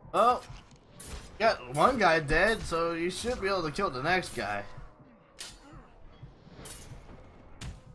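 Blades clash and strike in a close fight.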